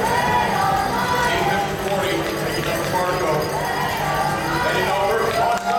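A crowd of young people and adults chatters and calls out in a large echoing hall.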